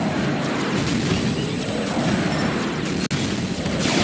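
Laser shots fire in quick bursts.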